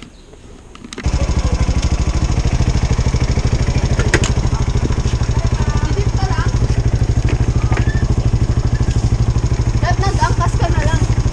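A motorcycle engine starts and idles with a steady, rapid throb.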